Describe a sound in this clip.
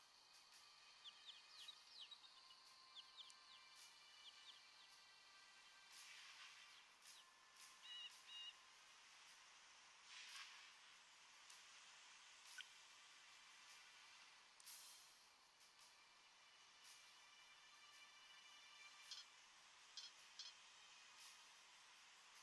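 Short clicks sound now and then.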